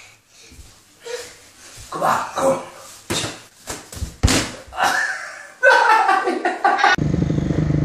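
Boxing gloves thud in quick blows.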